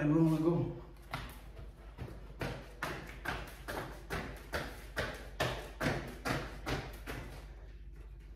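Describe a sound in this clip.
Footsteps walk across a hard floor and fade away.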